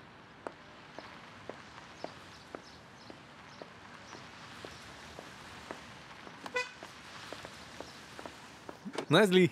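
A car drives up.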